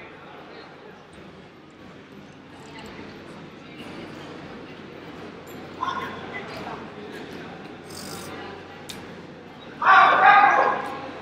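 Men talk and call out nearby in a large echoing hall.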